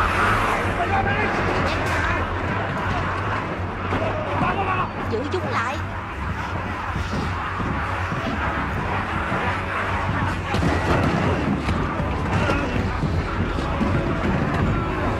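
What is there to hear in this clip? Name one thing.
A crowd of men shouts in panic.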